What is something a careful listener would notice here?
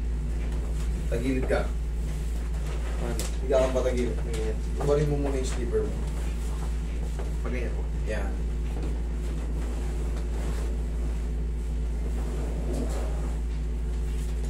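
A young man talks close by in short bursts.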